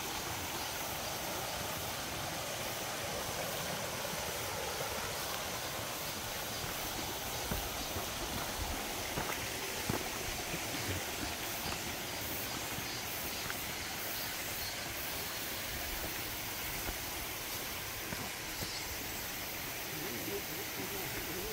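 Footsteps rustle through leaves and undergrowth.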